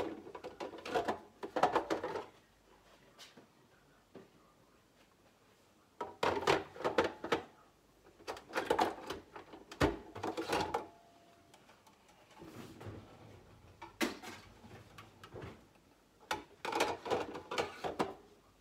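Plastic parts click and clatter against a coffee machine.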